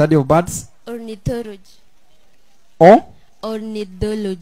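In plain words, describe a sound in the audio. A young girl answers through a microphone.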